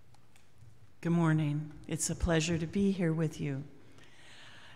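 A middle-aged woman speaks calmly into a microphone in an echoing room.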